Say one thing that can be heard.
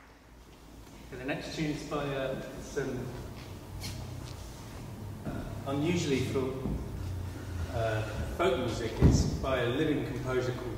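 A young man talks casually in a large echoing hall.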